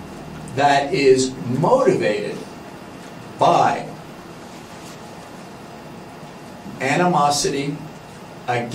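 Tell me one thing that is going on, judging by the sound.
A man lectures through a microphone, speaking in short bursts with pauses.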